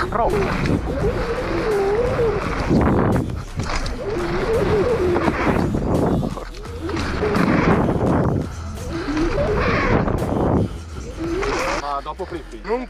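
Wind rushes loudly past a rider speeding downhill.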